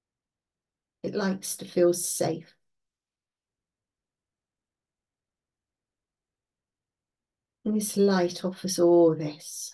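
An older woman speaks calmly through a computer microphone, with long pauses.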